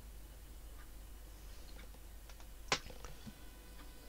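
Short electronic interface beeps sound as menu items are selected.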